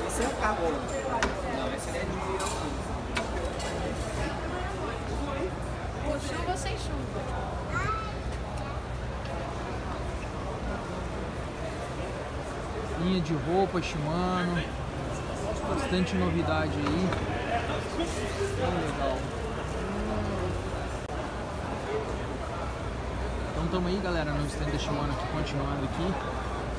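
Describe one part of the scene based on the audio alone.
Many people chatter in the background throughout.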